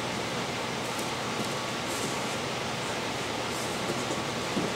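Bare feet and shoes shuffle softly on a padded mat.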